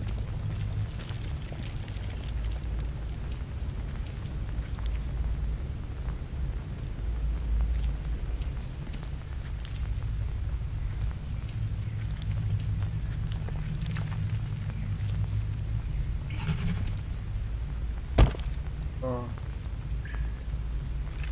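Footsteps crunch on dirt and gravel.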